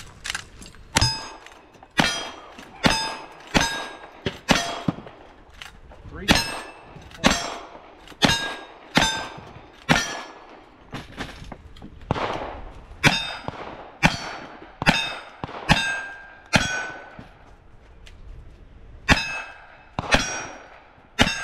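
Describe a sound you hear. Bullets ring off steel targets in the distance.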